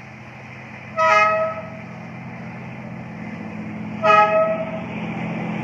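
A train horn sounds two short blasts.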